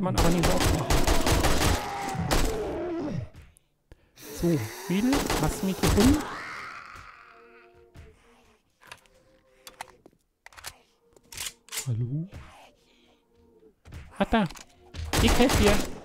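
An automatic rifle fires rapid bursts of loud shots.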